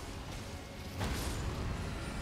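A heavy blow lands with a loud crash.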